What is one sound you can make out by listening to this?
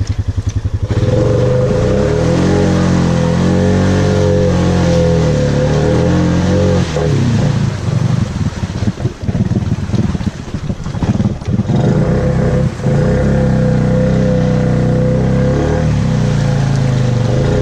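Tyres splash through muddy water.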